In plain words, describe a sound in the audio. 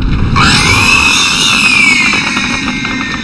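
A large monster lets out a shrill, wavering screech.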